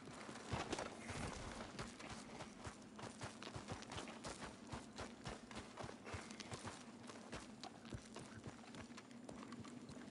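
Footsteps crunch on rocky ground in an echoing cave.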